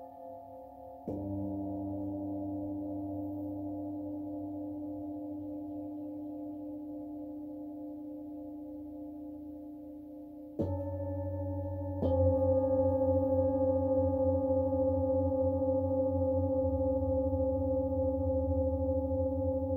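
Metal singing bowls are struck and ring out with long, humming tones that slowly fade.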